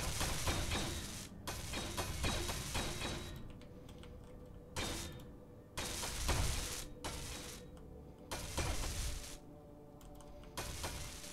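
Spacecraft thrusters roar in short bursts.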